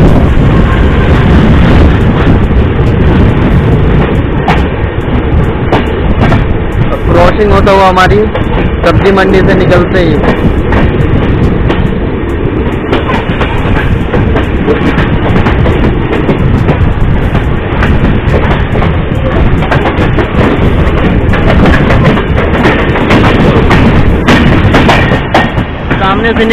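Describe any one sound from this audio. Two trains pass close by each other with a loud rumble and clatter of wheels on rails.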